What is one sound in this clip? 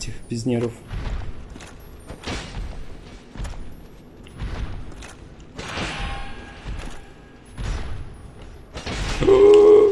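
Metal weapons clang and strike in a fight.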